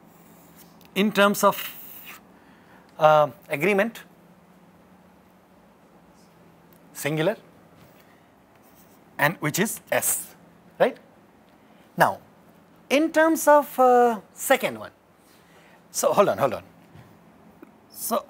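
A man speaks calmly in short phrases, close by.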